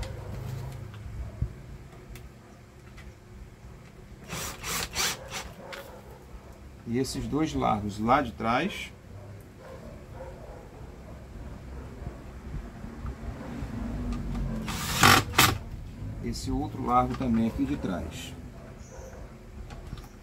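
A cordless drill whirs in short bursts.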